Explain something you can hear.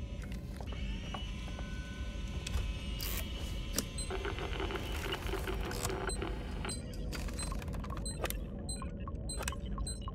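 A handheld electronic device crackles with static.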